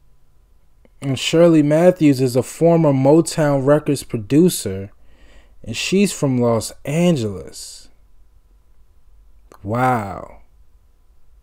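A man speaks close by, in a deep, calm voice.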